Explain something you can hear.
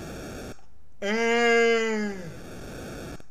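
A man cries out loudly.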